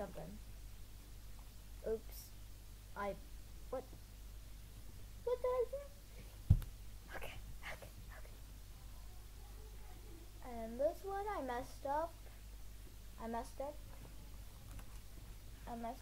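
A young girl speaks softly and close to the microphone.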